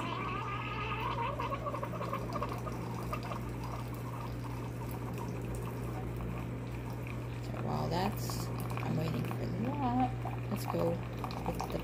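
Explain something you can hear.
Coffee trickles into a mug.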